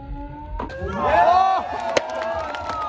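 A young crowd cheers and whoops outdoors.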